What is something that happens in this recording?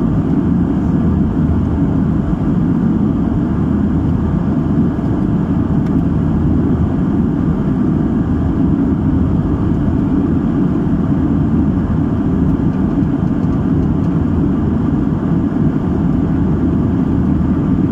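Jet engines roar in a steady, deep drone inside an airliner cabin.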